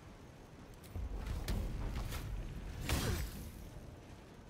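Game spell effects burst and crackle.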